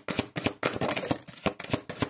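Cards rustle and tap as a hand handles them.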